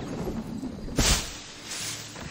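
A body lands with a heavy thud in rustling leaves.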